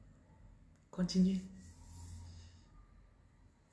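A woman laughs softly.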